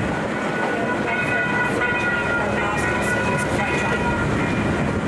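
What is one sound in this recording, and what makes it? A level crossing bell rings briefly as the train passes.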